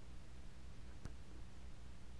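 A button clicks once on a turntable.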